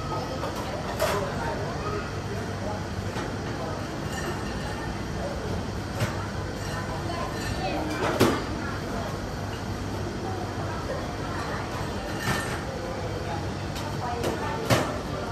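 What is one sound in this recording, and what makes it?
Chopsticks and a spoon clink against a bowl.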